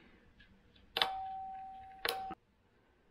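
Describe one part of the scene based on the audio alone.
A crimping tool clicks shut on a cable lug.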